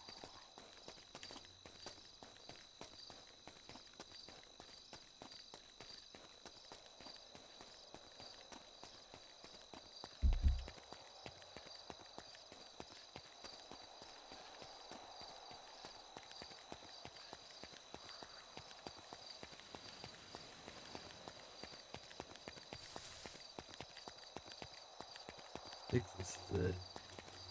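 Footsteps run quickly along a road.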